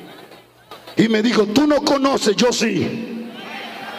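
A man speaks loudly and with fervour into a microphone, echoing through loudspeakers.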